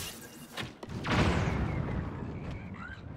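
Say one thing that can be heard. A fiery explosion bursts with a deep rumble.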